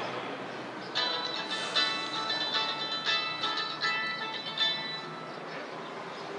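A phone plays a ringtone.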